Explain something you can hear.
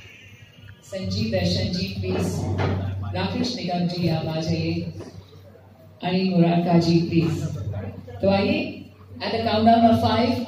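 A woman speaks through a microphone and loudspeaker.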